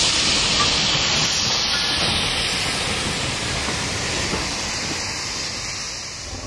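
Railway wagons and a coach clatter over rail joints.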